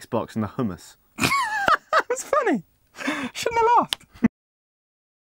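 A second young man speaks with animation close by.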